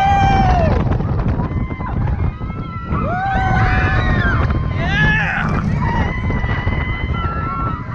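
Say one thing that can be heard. Riders scream and shriek close by.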